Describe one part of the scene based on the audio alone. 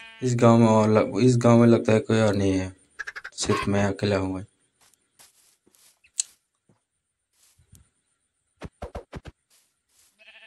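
A chicken clucks.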